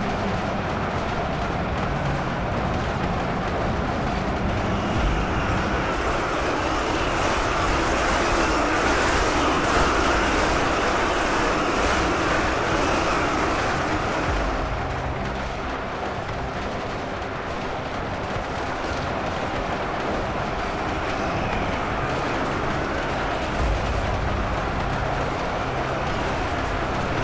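A huge army roars and clashes in battle.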